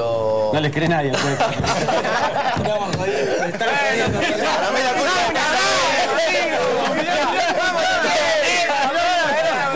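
Several men talk over each other with animation.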